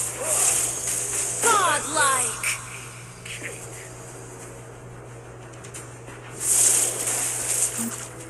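Magic blasts whoosh and crackle in bursts during a fight.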